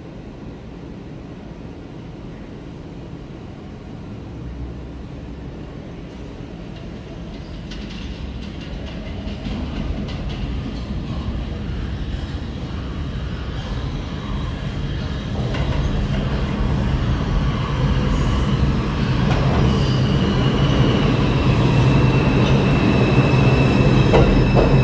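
A subway train approaches with a growing rumble and roars into an echoing underground station.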